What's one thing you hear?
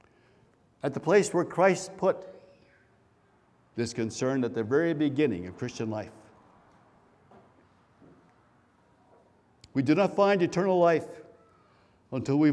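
An elderly man speaks calmly into a microphone in a large echoing hall, pausing between phrases.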